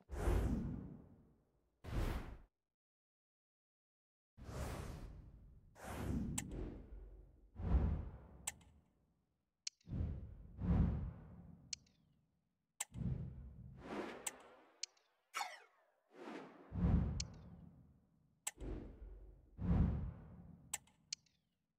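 Short interface whooshes and clicks sound as menus change.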